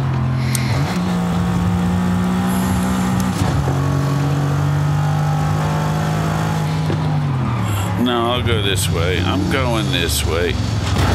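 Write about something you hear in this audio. A car engine hums steadily at speed, its pitch jumping as it shifts gears.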